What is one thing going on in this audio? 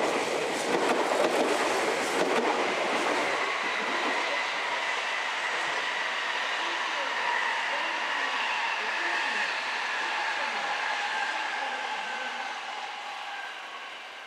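A train approaches slowly along the tracks, its motor whining steadily.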